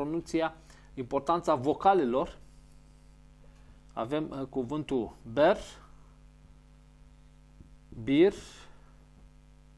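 A middle-aged man speaks slowly and clearly, as if teaching, close by.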